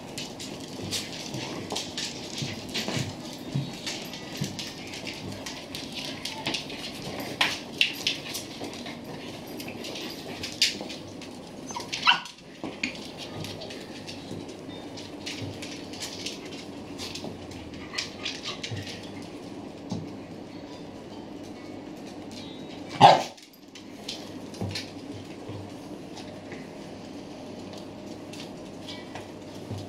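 Dogs' claws click and patter on a hard floor.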